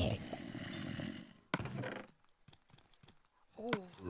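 A wooden chest creaks open in a video game.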